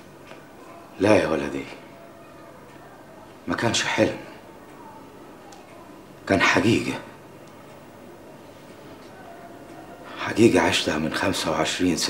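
A man speaks up close in short, tense bursts.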